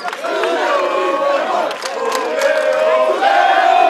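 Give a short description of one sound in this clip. A young man cheers and shouts close by.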